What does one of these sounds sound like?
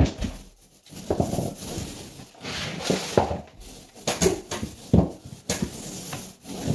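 A paint roller rolls wetly over a wall in repeated strokes.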